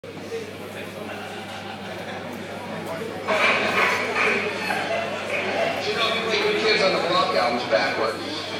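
A rock band plays live through loudspeakers in a large echoing hall.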